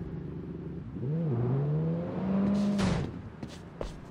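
A motorcycle engine revs and then cuts off.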